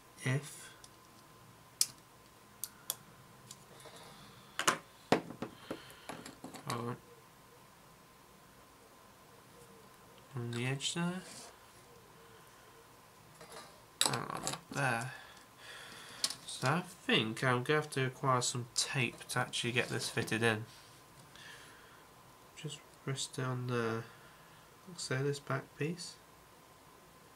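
Plastic parts click together in someone's hands.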